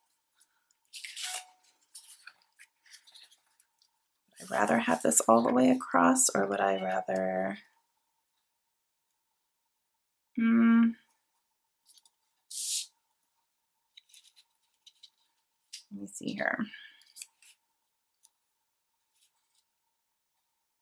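Sheets of paper rustle and slide across a table.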